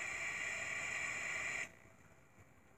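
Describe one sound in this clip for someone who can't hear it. Loud electronic static hisses and crackles.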